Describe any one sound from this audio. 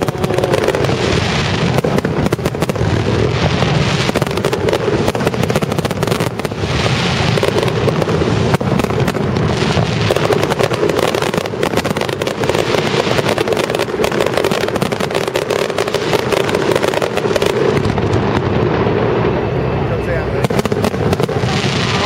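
Fireworks crackle and sizzle.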